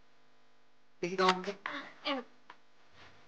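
A woman speaks warmly and close by.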